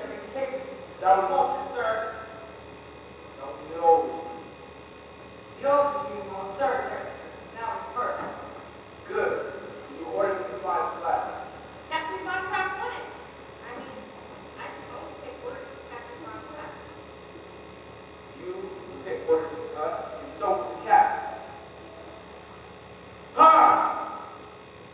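A man speaks in an echoing hall, heard from a distance.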